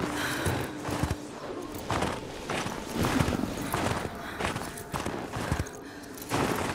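A snowboard carves and scrapes through deep snow in repeated swishing bursts.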